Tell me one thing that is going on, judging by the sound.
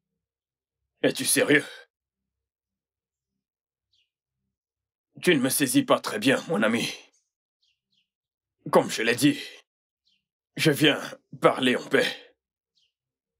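A second man answers in a deep voice, close by.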